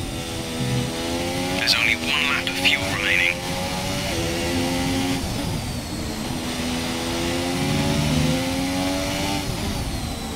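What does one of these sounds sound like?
A racing car engine whines at high revs, rising in pitch and dropping with each gear change.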